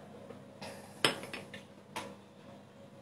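A glass clinks on a table.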